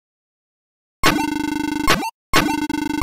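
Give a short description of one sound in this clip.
Rapid electronic blips sound as dialogue text types out.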